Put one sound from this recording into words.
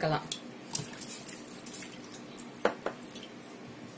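Water swishes and splashes as a hand stirs it in a bowl.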